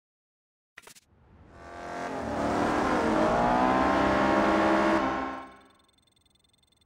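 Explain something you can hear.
A sports car engine roars, rising in pitch as the car speeds away.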